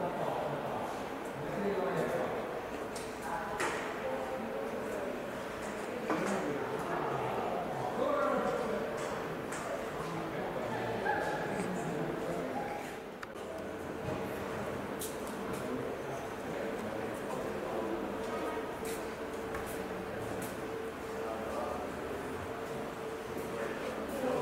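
Men and women chatter in the distance, echoing in a large hall.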